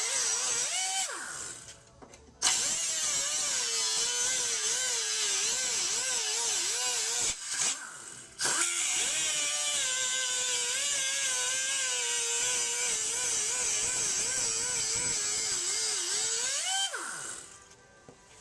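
A grinder spins down with a falling whine after each cut.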